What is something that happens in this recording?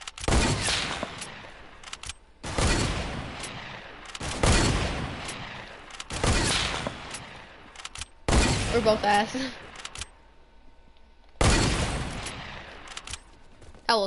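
A shotgun fires loud blasts at slow intervals, each ringing out.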